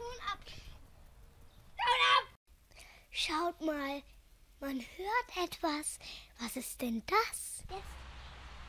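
A young boy speaks excitedly into a microphone nearby.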